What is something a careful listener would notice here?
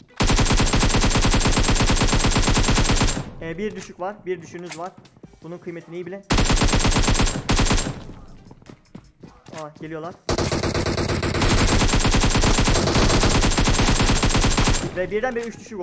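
Rapid bursts of automatic gunfire ring out loudly.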